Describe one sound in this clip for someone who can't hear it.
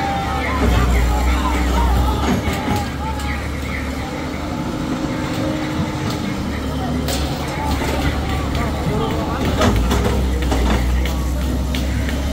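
Debris crashes and clatters as a building is torn down.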